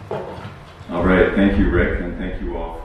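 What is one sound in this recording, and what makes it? A man speaks into a microphone, heard through a loudspeaker in a large room.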